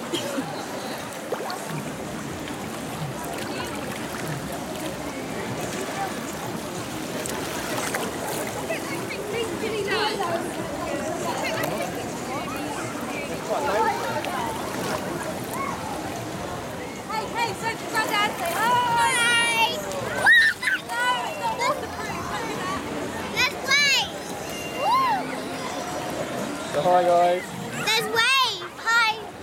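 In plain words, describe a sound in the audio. Water splashes and laps as people wade in a pool.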